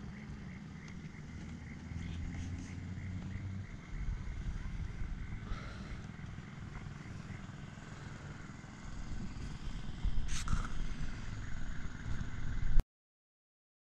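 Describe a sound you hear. A boat's motor rumbles low and steady.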